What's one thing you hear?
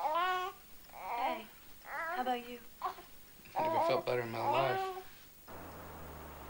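A child giggles and babbles playfully.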